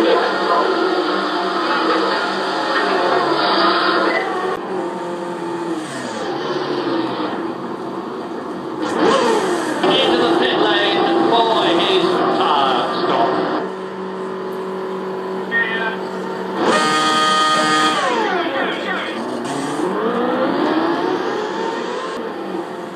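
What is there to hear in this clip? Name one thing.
A racing car engine screams and changes pitch as it speeds up and slows down.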